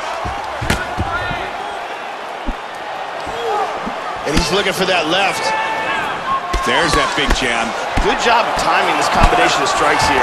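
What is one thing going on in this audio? Punches land on a body with dull thuds.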